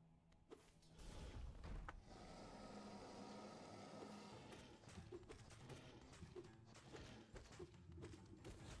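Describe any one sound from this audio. A low rumbling roar fills the space during a fight.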